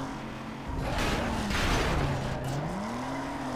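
Metal scrapes harshly against a barrier.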